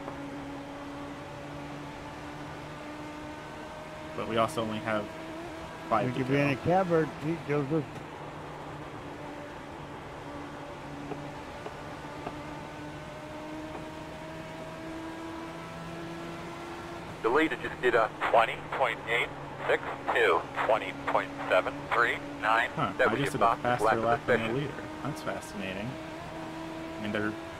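A race car engine drones steadily, shifting slowly in pitch.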